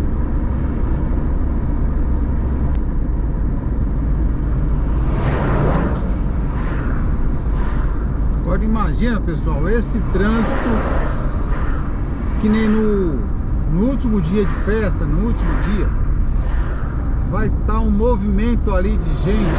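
A car drives steadily along a road with a low engine and tyre rumble.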